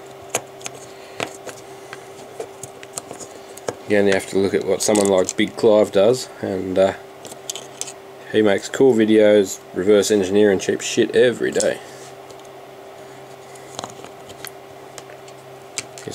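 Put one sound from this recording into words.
Small plastic and metal parts click softly as fingers handle them.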